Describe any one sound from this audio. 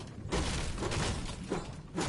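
A pickaxe strikes a wall with sharp knocks.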